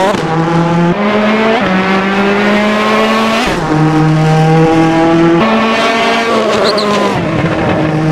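A rally car engine revs hard, its pitch rising and dropping with each gear change.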